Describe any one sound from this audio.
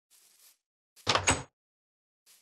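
A wooden door opens.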